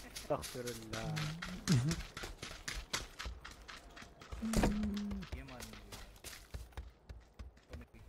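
Footsteps run quickly over ground and wooden floorboards.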